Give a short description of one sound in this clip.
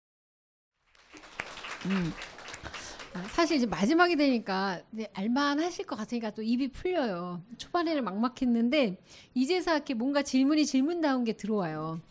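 A woman speaks calmly into a microphone, heard over loudspeakers in a room.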